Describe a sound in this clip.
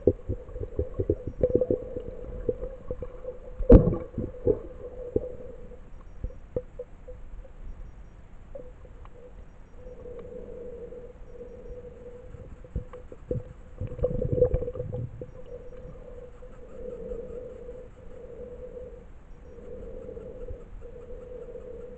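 Water murmurs and gurgles steadily, heard from under the surface.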